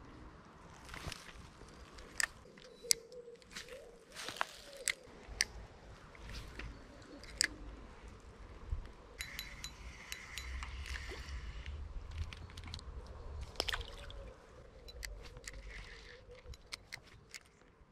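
A fishing reel clicks and rattles as it is handled close by.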